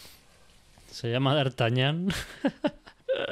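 A young man laughs loudly into a microphone, close up.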